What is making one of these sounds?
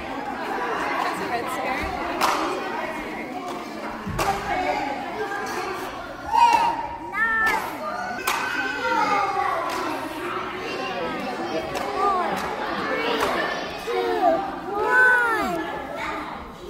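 Many children and adults chatter in a large echoing hall.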